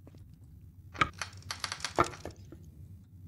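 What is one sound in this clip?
A wooden plank scrapes and clatters against a door.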